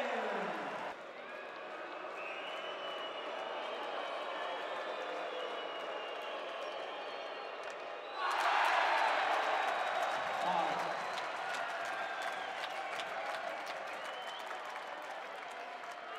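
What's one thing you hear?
A large crowd cheers in an echoing ice arena.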